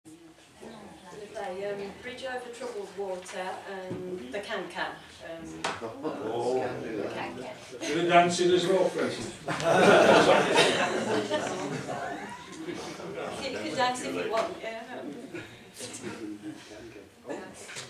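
A woman speaks calmly into a microphone in a small echoing room.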